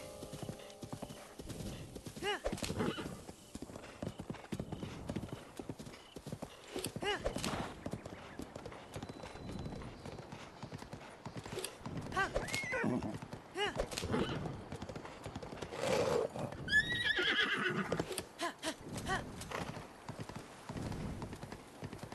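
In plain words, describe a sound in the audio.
A horse's hooves thud as it trots along, then clop on stone.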